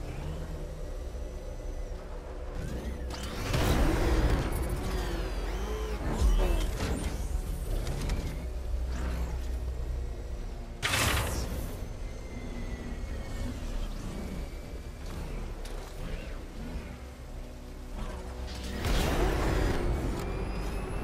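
A small remote-controlled vehicle's motor hums steadily.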